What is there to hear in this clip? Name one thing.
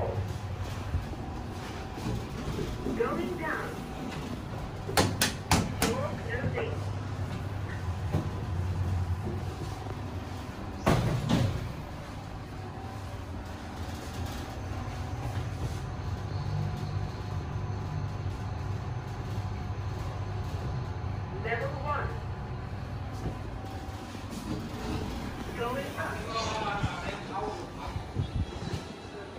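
A lift hums low and steady as it travels.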